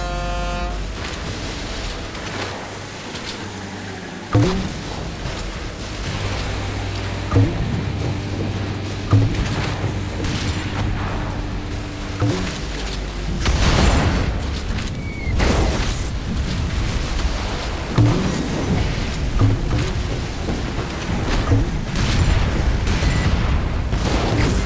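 Water splashes and sprays behind a speedboat.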